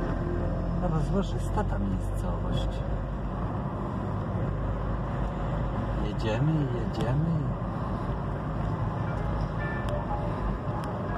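A car engine hums steadily from inside the car as it drives along.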